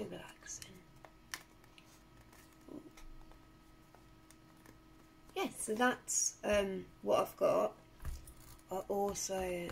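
Paper rustles and creases under hands.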